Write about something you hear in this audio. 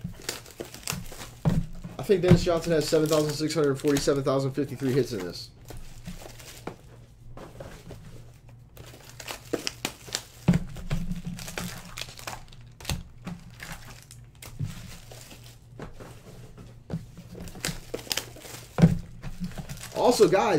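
Plastic card wrappers crinkle and rustle in hands.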